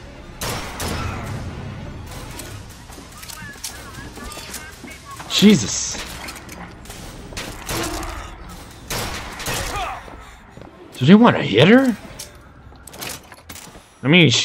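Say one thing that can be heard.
A rifle fires a burst of sharp, loud shots.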